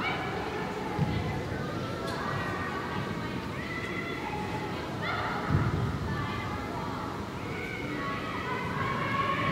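Young women shout and call to each other across a large echoing hall.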